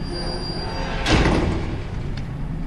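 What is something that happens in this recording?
A metal gate clangs shut.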